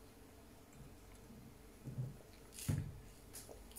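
A woman sips a drink and swallows.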